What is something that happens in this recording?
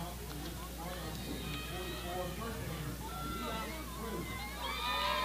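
Young women shout and cheer from across an open field.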